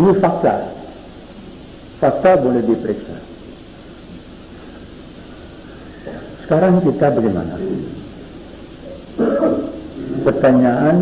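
An elderly man speaks slowly and deliberately into a microphone, in short phrases with pauses.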